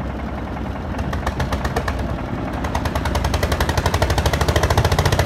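Gravel and sand pour from a tipped wheelbarrow into a mixer.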